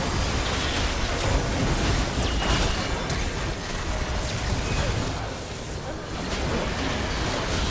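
Game spell effects whoosh and burst in quick succession.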